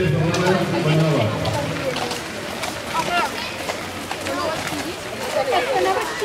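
Hooves clop on a dirt path.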